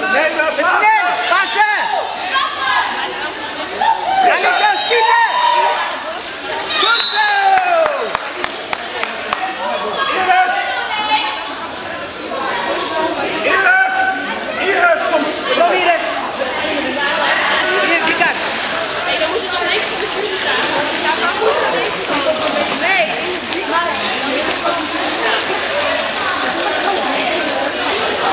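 Men and women shout from the side of an echoing hall.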